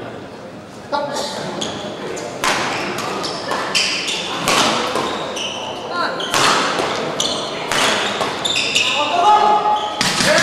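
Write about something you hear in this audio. Rackets strike a shuttlecock back and forth in a large echoing hall.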